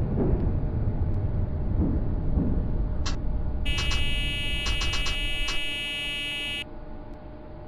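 A tram rumbles along the rails and slows to a stop.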